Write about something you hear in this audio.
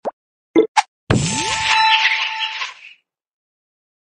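A sparkling burst sounds as a special piece explodes.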